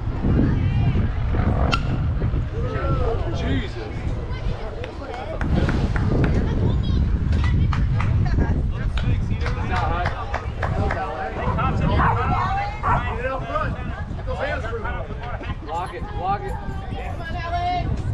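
Several young players and adults call out and chatter nearby.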